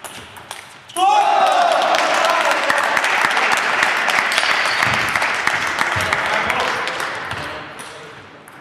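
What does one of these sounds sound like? A small crowd cheers and applauds loudly in an echoing hall.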